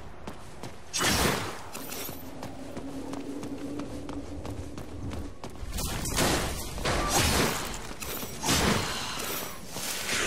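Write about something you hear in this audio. A sword slashes with sharp swishes and impacts.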